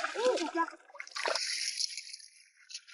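Water splashes over rocks.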